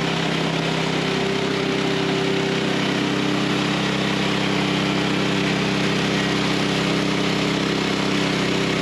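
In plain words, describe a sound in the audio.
A petrol engine drones steadily.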